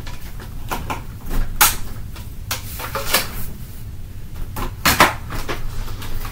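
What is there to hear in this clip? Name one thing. Plastic parts clatter and knock as a vacuum cleaner is handled.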